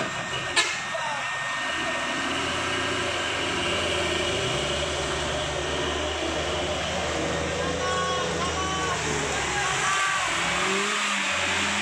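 A car engine strains as the car drives slowly through deep mud.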